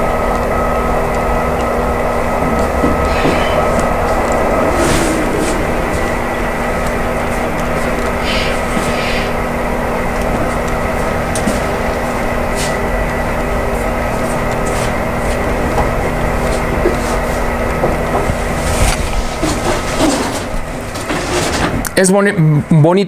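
Small train wheels click over rail joints.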